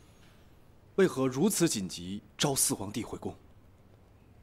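A young man asks a question in a firm voice, close by.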